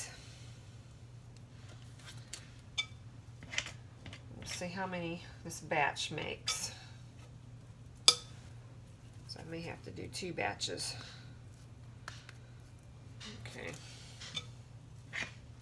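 A ball of dough is pressed down onto baking paper with a soft tap.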